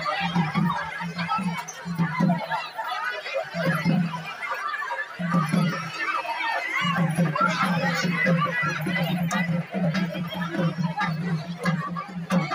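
A crowd of women chatter and call out excitedly close by.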